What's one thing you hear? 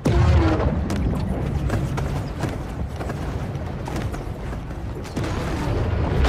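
A creature's jaws thud and crunch as it bites.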